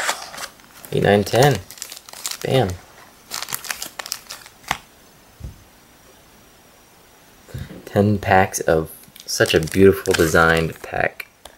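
Foil packets rustle and crinkle as hands shuffle and tap them.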